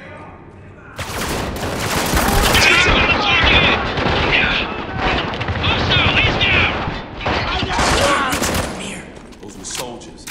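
Automatic rifles fire in rapid, loud bursts.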